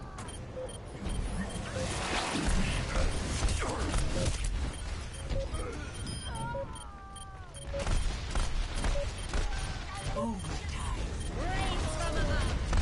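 Pistols fire in rapid bursts in a video game.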